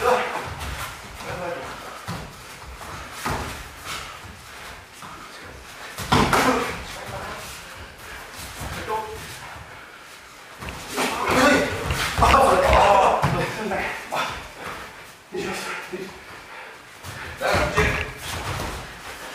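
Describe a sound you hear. Bare feet shuffle and thump on a mat.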